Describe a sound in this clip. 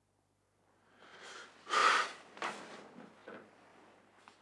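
A middle-aged man speaks in a low voice close by.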